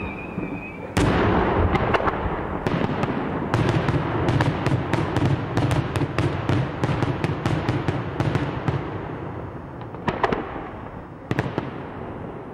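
Rapid firecracker blasts crackle in quick succession.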